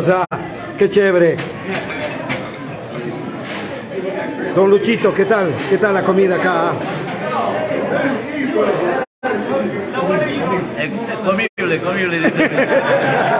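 Many people chatter and talk at once nearby, in a busy room.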